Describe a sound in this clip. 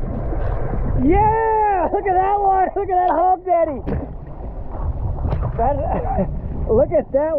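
Water splashes and laps close by at the surface.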